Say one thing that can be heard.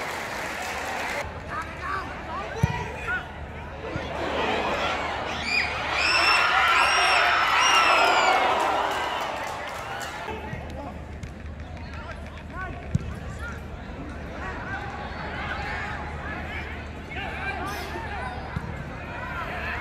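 Players shout across a football pitch.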